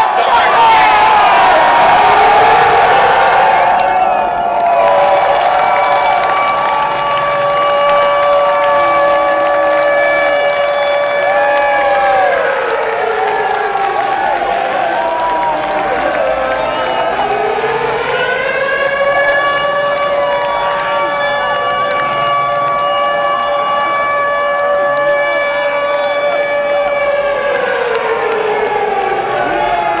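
Loud music plays through big loudspeakers, with long held tones that slowly sweep down and up again.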